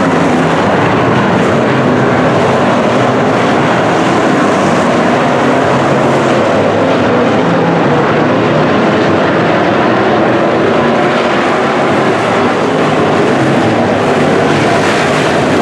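Race car engines roar loudly as the cars speed around the track.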